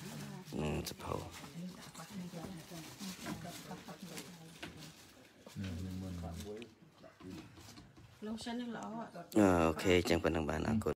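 Several women talk softly nearby.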